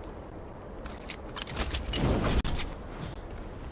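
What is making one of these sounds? Game sound effects clatter and chime in quick bursts.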